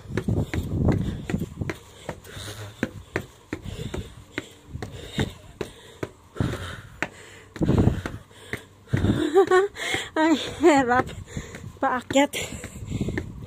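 Footsteps climb stone stairs at a steady pace.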